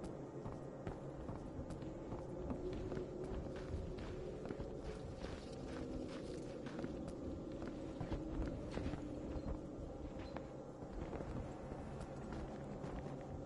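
Footsteps tread steadily across a hard floor indoors.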